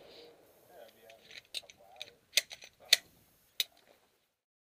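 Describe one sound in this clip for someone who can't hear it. A pistol's metal parts click as it is handled.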